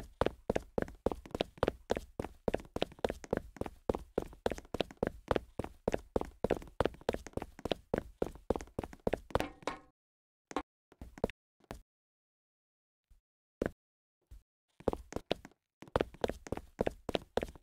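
Quick, light footsteps patter in a steady run.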